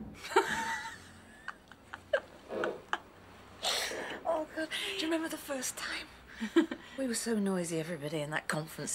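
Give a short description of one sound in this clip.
Young women laugh and giggle close by.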